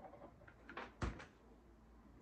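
A glue gun knocks against a table as it is set down.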